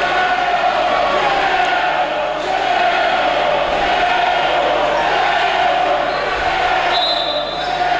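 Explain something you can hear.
A crowd murmurs and cheers steadily in a large echoing gym.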